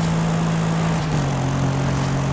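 A sports sedan engine shifts gear.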